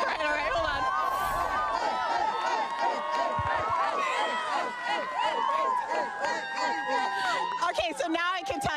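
A crowd of teenagers cheers and shouts excitedly outdoors.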